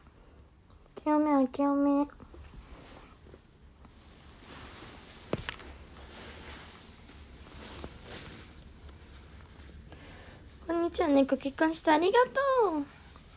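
A young woman speaks close up in a high, animated voice.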